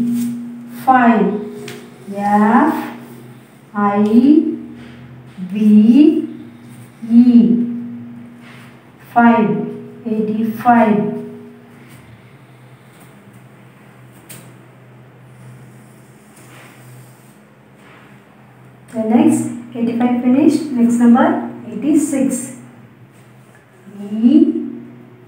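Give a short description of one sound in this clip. A young woman speaks clearly and slowly nearby, as if teaching.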